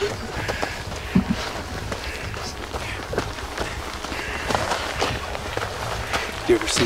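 Footsteps crunch on snowy, rocky ground.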